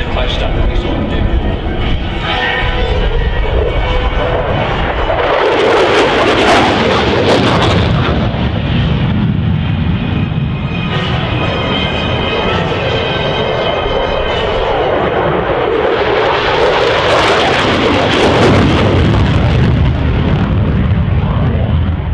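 A jet roars loudly overhead, its engine rising and fading as it passes.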